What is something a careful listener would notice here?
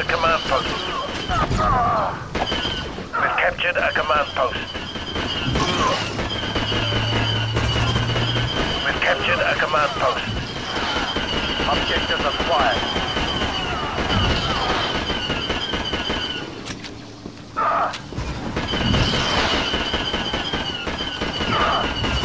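Blaster rifles fire in rapid bursts.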